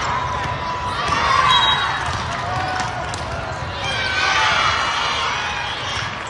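Young women shout and cheer to one another.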